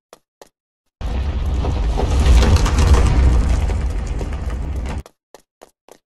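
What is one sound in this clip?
A large boulder rumbles as it rolls past.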